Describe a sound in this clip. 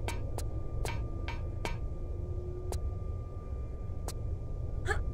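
Footsteps clank on a metal floor.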